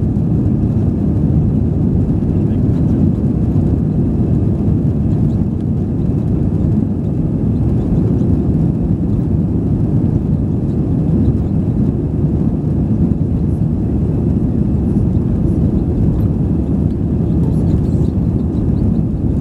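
Tyres rumble over the runway as an airliner speeds up for takeoff.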